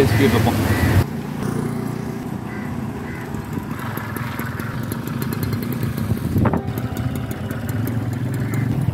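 A moped engine rumbles steadily while riding.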